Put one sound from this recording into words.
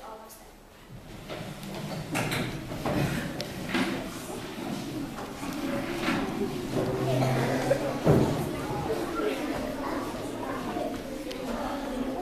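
Children chatter and move about in a busy, echoing room.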